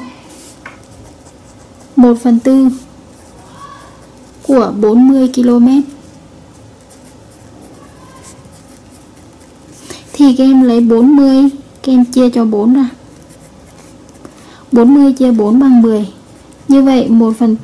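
A marker pen squeaks and scratches on paper.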